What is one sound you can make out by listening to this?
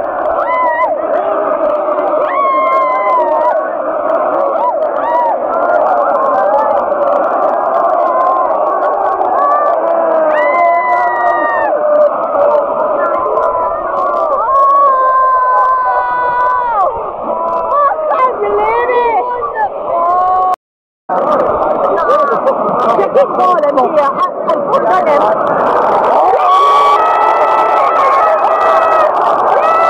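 A large stadium crowd sings and chants loudly, outdoors.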